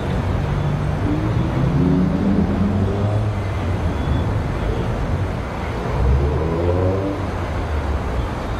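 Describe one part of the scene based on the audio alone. A car engine revs as it pulls away.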